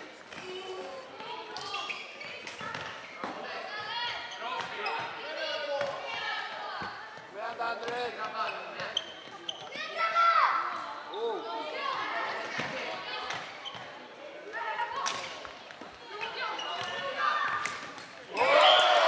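Floorball sticks click against a plastic ball.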